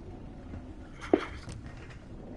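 A small phone clicks as a hand picks it up off a metal floor.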